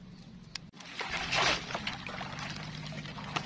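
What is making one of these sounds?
Water splashes as a wire trap is lowered into it.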